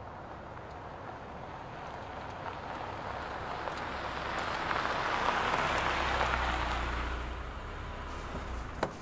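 A car engine approaches, passes close by and fades.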